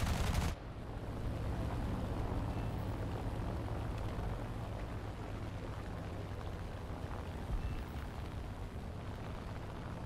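Machine guns fire in short rattling bursts.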